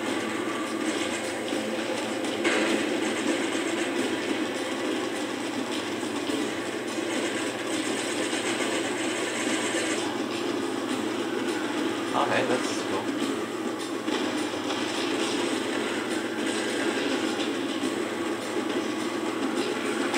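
Gunfire crackles amid a steady noisy roar of battle.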